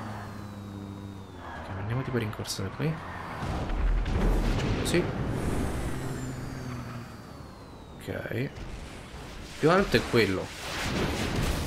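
A sports car engine revs and roars.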